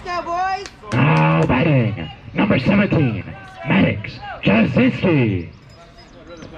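A group of young voices chants loudly in unison.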